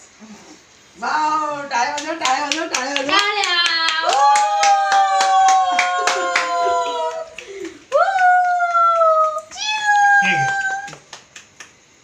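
A group of women and men sing together loudly.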